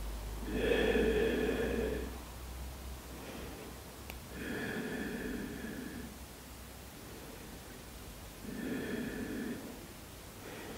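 A woman breathes out slowly and deeply.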